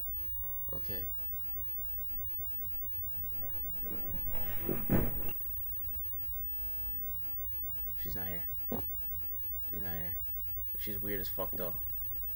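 A young man talks into a close microphone in short, animated bursts.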